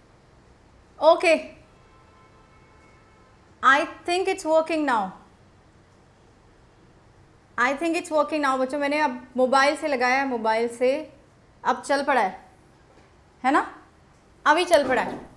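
A young woman speaks clearly and calmly into a close microphone.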